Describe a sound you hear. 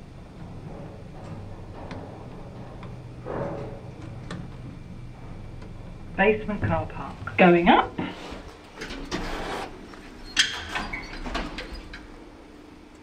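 An elevator motor hums steadily.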